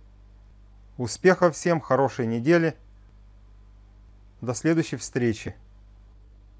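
A middle-aged man speaks calmly through a microphone in short bursts.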